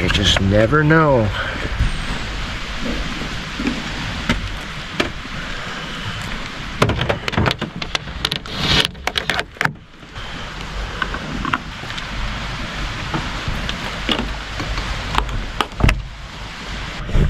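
Cables and gear knock and rattle as they are handled.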